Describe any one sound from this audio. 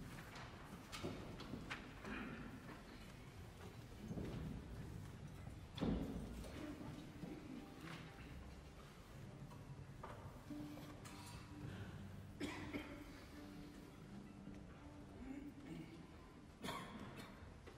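Strings play sharp accented notes.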